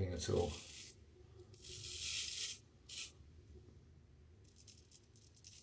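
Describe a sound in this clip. A razor scrapes through stubble in close, rasping strokes.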